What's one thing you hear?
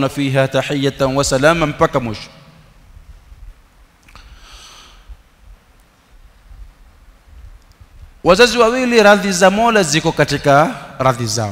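A man speaks calmly and with emphasis into a close microphone, pausing between phrases.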